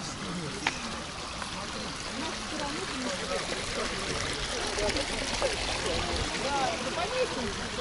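Water trickles over rock.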